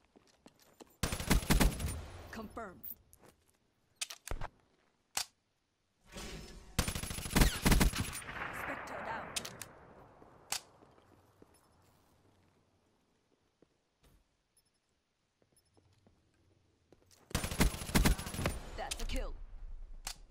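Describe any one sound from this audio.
A gun fires rapid bursts of shots up close.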